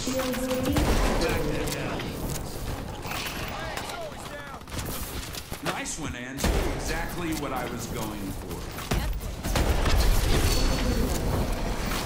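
A gun fires loud, booming blasts.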